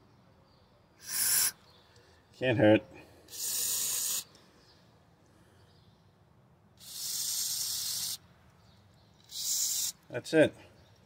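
An aerosol spray hisses in short bursts.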